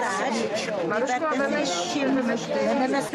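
An elderly woman speaks with animation close by.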